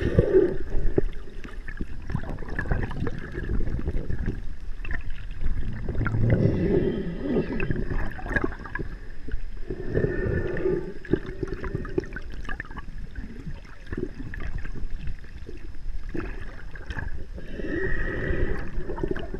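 Water rushes and bubbles gurgle close by underwater.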